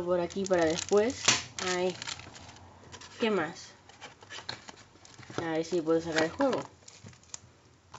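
A cardboard box scrapes and taps as hands move it.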